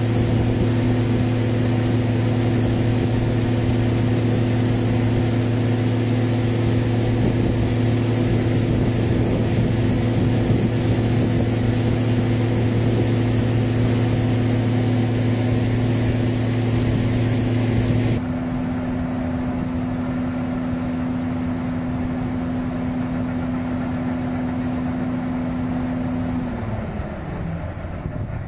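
A combine harvester's diesel engine drones close by.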